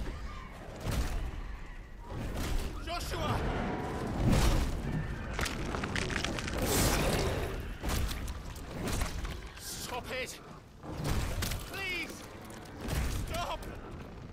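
A young man speaks tensely and close by.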